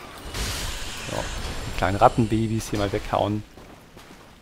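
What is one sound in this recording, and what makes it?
A large creature roars loudly.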